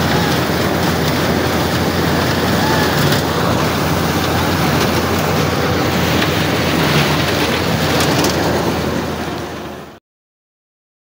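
A forage harvester roars loudly.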